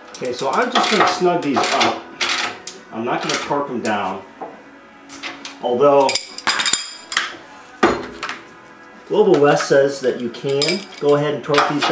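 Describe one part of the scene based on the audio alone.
A ratchet wrench clicks against metal.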